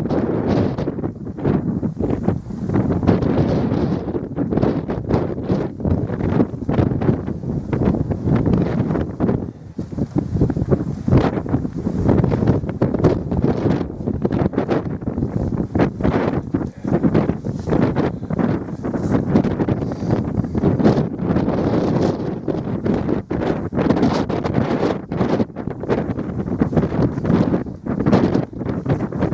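Strong wind gusts roar and buffet the microphone outdoors.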